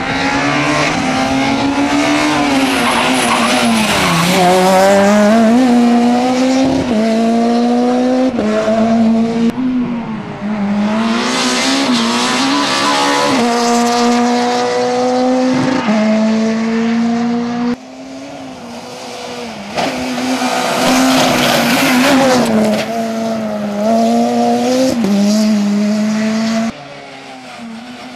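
A rally car engine roars loudly, revving up and down through the gears.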